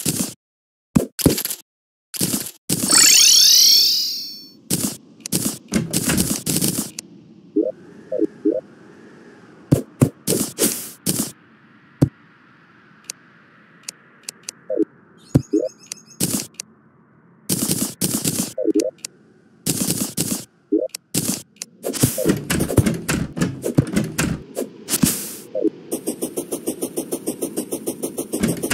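Short electronic clicks and pops sound again and again.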